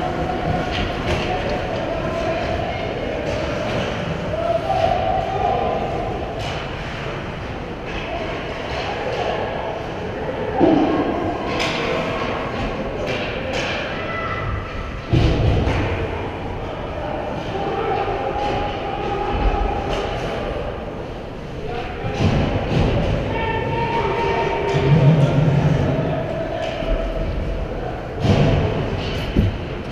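Skate blades scrape across ice in a large echoing rink.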